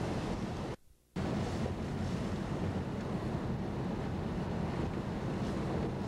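Windshield wipers swish across the glass.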